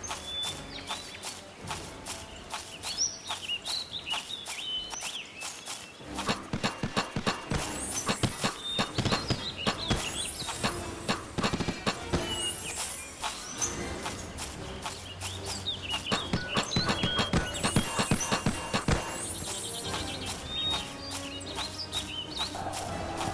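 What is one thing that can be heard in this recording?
Armoured footsteps thud quickly on soft ground.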